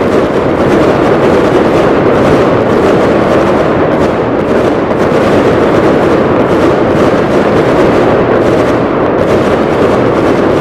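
Fireworks crackle and fizz continuously.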